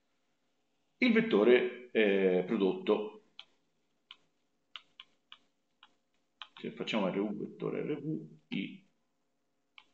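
A man speaks calmly and close through a microphone.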